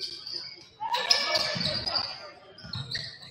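A crowd cheers briefly in an echoing gym.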